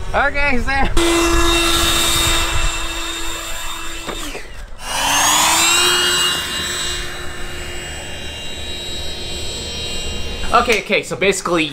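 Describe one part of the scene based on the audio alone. An electric motor whines steadily as a model plane flies.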